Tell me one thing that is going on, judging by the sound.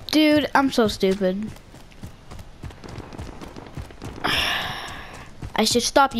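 Footsteps run quickly over dry grass and dirt.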